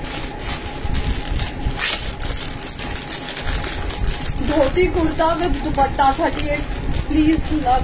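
A plastic packet crinkles in a woman's hands.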